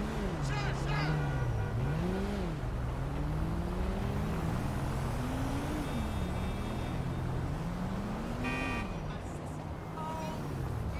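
Car engines hum and rise and fall in pitch as cars drive past nearby.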